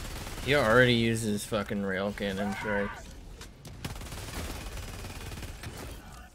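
A rifle fires in bursts of gunshots.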